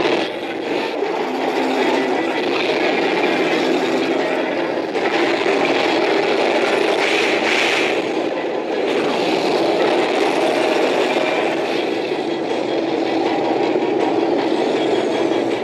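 Energy beams crackle and hum.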